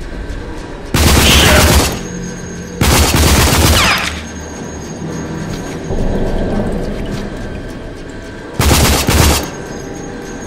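A rifle fires loud rapid bursts in an echoing space.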